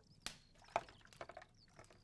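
Water splashes as it is scooped from a jar.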